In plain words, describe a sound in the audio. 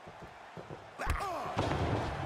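A heavy body blow lands with a thud.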